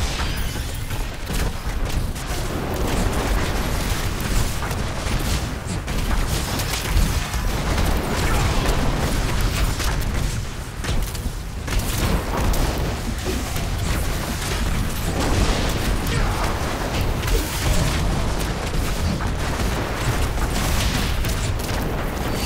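Fiery explosions boom in a video game battle.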